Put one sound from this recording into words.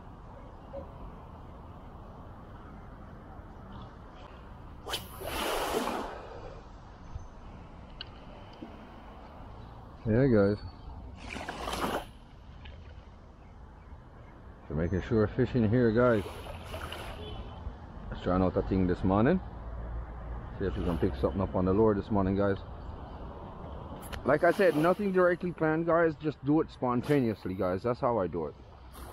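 Small waves lap softly at the shore.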